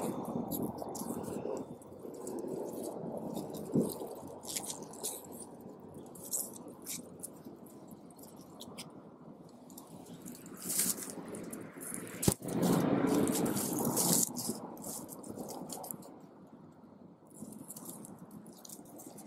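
Leaves rustle softly as fingers brush through them.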